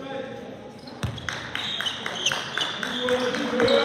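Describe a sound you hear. A basketball bounces repeatedly on a hard floor.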